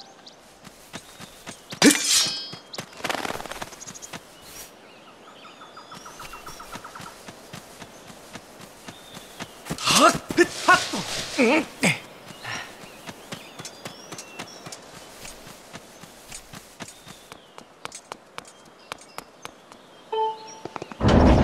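Quick footsteps patter as a video game character runs.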